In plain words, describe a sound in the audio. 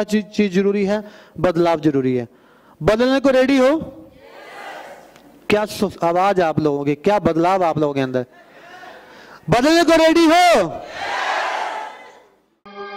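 A man speaks through a microphone with animation, his voice echoing in a large hall.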